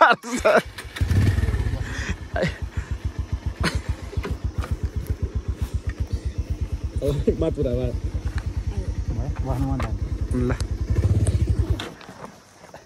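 A motorcycle engine runs with a steady low throbbing.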